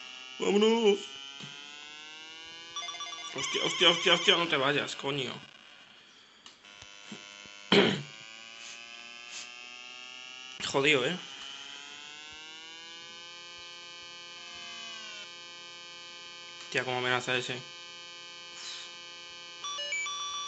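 A buzzy electronic engine tone hums steadily and rises in pitch as it speeds up.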